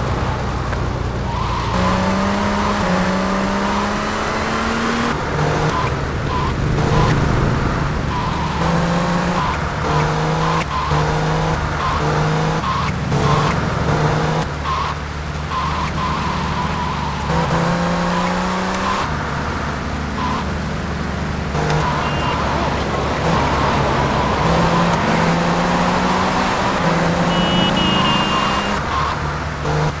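Rain hisses steadily.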